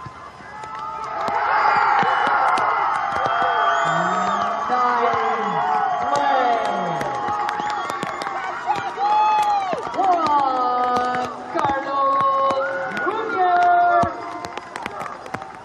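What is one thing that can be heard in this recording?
Young players shout and call out to each other across an open outdoor field.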